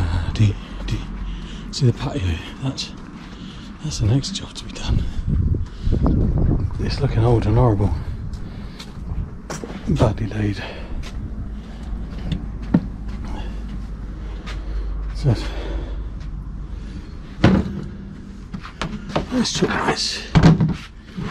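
Footsteps scuff on stone paving and then thud on wooden decking outdoors.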